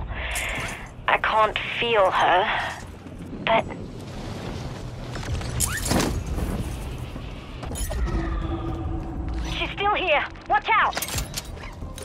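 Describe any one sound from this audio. A young man talks through a microphone with animation.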